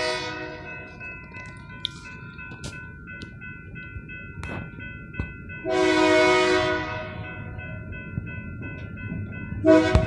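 A railway crossing bell rings steadily.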